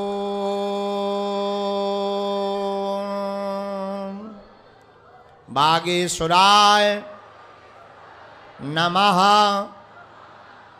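A young man sings long held notes into a microphone, heard through loudspeakers.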